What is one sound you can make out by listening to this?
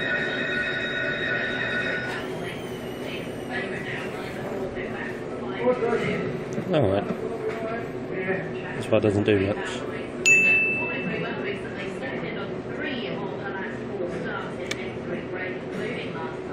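A slot machine plays electronic chimes and jingles.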